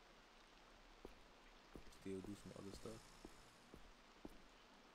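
Footsteps tap slowly on pavement.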